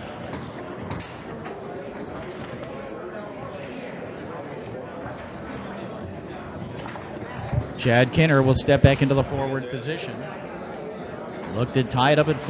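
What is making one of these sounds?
A foosball ball cracks against the plastic men and walls of the table.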